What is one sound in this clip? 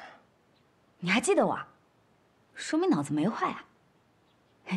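A young woman speaks close by with animation.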